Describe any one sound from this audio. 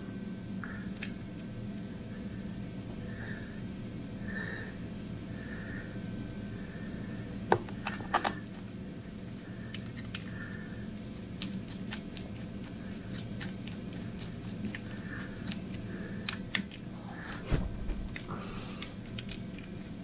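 A ratchet wrench clicks as bolts are turned.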